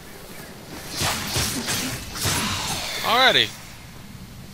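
A fiery explosion bursts with a roar.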